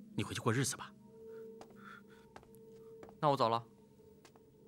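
A man speaks briefly and quietly.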